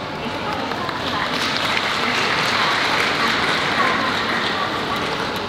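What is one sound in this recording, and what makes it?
A brass band plays music in a large echoing hall.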